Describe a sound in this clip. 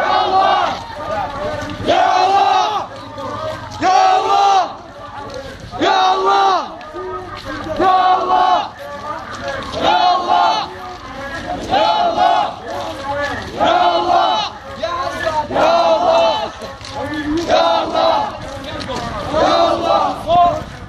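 A group of men chant loudly together in a steady repeating rhythm.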